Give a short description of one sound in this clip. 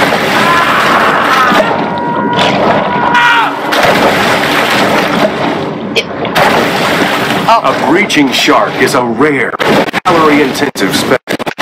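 Water splashes as a shark breaches and crashes back into the sea.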